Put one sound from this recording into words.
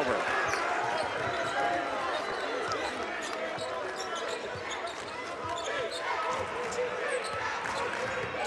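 A basketball bounces on the court as a player dribbles.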